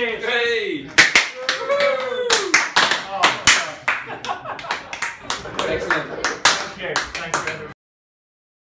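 A crowd claps loudly.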